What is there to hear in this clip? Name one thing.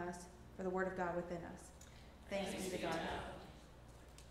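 A woman speaks into a microphone, heard over loudspeakers in a large hall.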